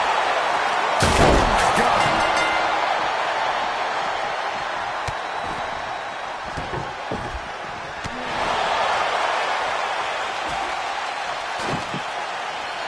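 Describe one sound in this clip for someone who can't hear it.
Heavy thuds and crashes ring out from a wrestling ring.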